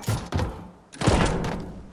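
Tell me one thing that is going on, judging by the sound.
A pickaxe swings and thuds against a wall.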